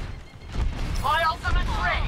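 A game weapon fires with a crackling burst.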